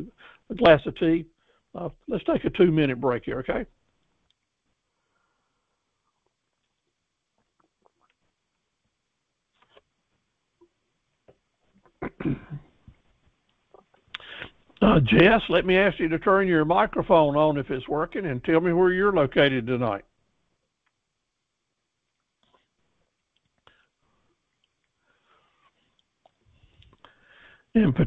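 An elderly man speaks calmly through a computer microphone, with pauses.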